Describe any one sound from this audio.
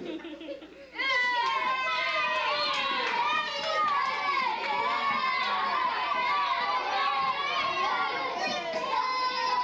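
A group of children sing together.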